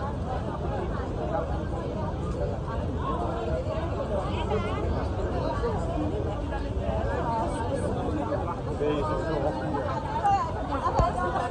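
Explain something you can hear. A crowd of men and women chatters all around, close by, outdoors.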